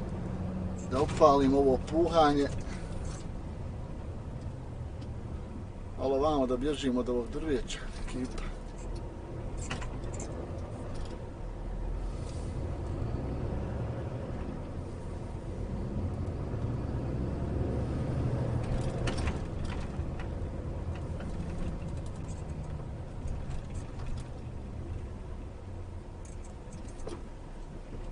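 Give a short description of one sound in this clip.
A truck engine rumbles steadily as the truck drives along a road.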